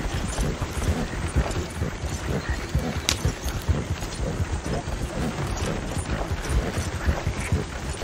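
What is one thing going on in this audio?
Hooves thud steadily on soft ground.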